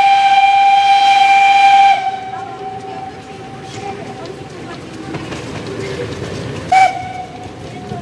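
A steam locomotive's whistle blows loudly, twice.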